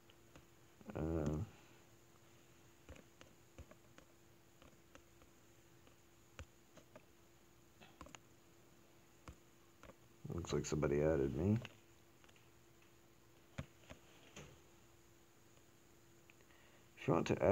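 Soft menu clicks tap now and then.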